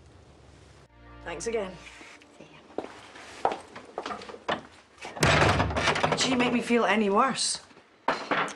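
A second woman answers in a low, tense voice.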